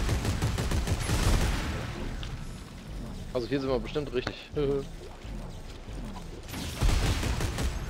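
A futuristic gun fires in loud bursts.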